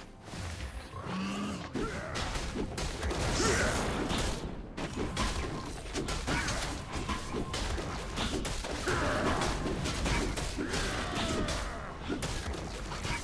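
Game weapons strike with rapid hits.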